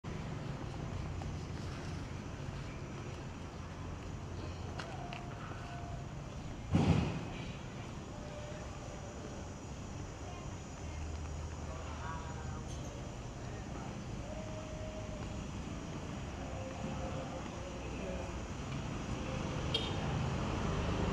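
Distant street traffic hums steadily outdoors.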